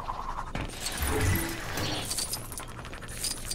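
Electricity crackles and whooshes past.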